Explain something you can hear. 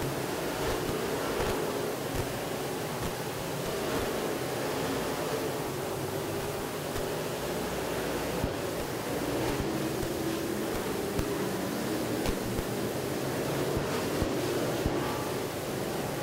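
Race car engines roar loudly around a dirt track.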